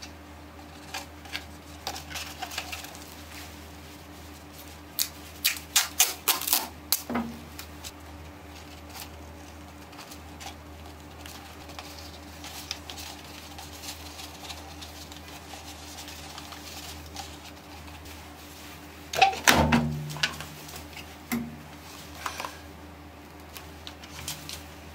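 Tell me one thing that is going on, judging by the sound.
A plastic sheet crinkles and rustles as it is handled.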